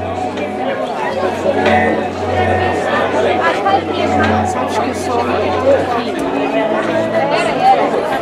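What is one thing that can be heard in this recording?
A young woman speaks to a crowd.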